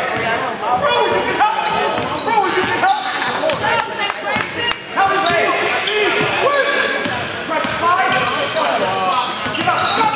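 A man shouts instructions from the sideline.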